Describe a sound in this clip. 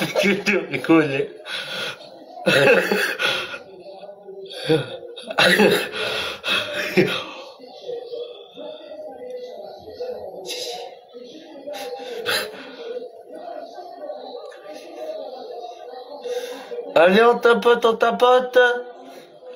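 A young man sings expressively, heard through an online call.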